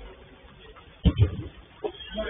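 A ball is kicked with a dull thump.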